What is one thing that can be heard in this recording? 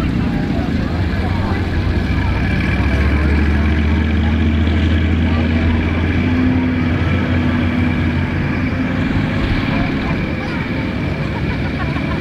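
An armoured vehicle's engine drones steadily as it drives away.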